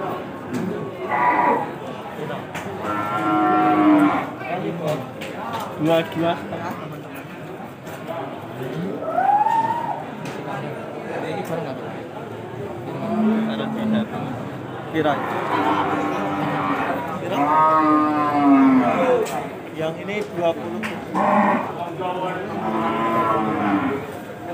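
Men talk nearby in a murmuring crowd.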